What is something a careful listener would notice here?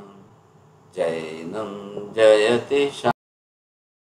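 An elderly man speaks with animation through a microphone over an online call.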